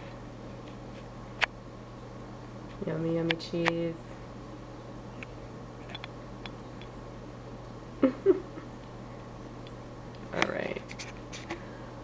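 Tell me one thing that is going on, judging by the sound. A mouse nibbles softly on a crumb.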